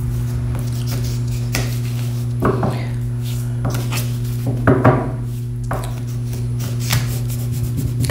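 Playing cards rustle and snap as a woman shuffles them.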